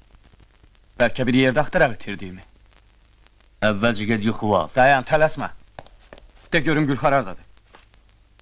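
A second man speaks with feeling, close by.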